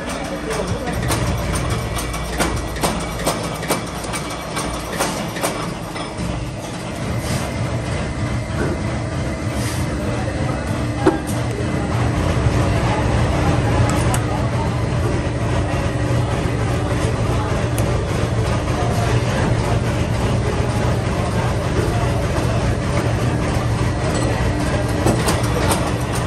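Metal parts clink and clatter as they are fitted by hand.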